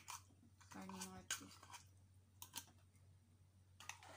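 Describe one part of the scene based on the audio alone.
Food drops from a can onto a plate.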